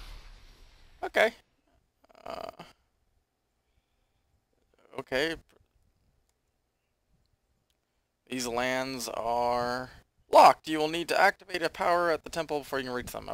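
A young man talks calmly into a headset microphone, close by.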